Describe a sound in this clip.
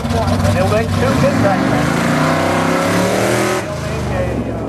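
A loud race car engine revs hard and roars as the car launches.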